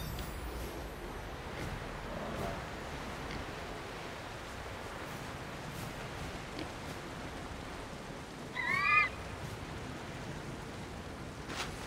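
Wind rushes steadily past during a long glide through the air.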